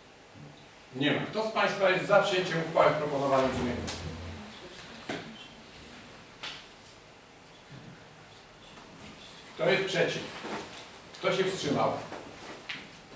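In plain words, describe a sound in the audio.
A man speaks calmly into a microphone, heard in a room.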